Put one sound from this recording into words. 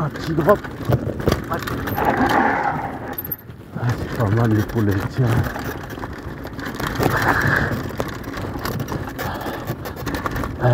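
Bicycle tyres rattle and crunch over a rough dirt trail.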